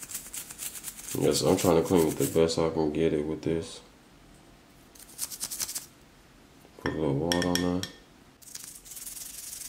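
A toothbrush scrubs briskly against a small metal piece.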